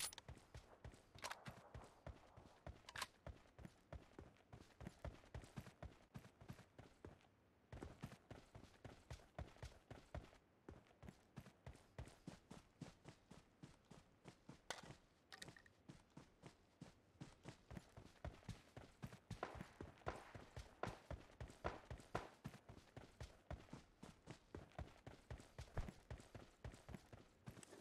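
Grass rustles in quick, regular bursts.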